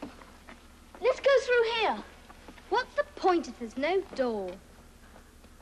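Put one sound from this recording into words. A young boy speaks with urgency, close by.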